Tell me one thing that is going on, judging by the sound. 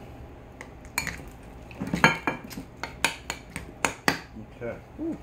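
A spoon clinks and scrapes against a bowl while stirring.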